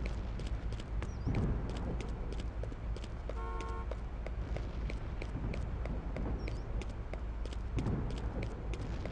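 A low rumble of city traffic hums steadily.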